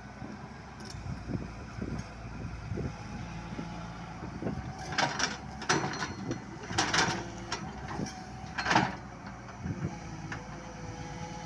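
An excavator's diesel engine rumbles steadily close by.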